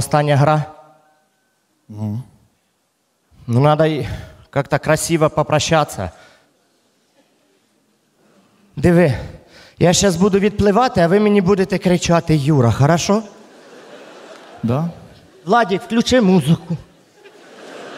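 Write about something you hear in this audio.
A man speaks with animation through a microphone on a stage.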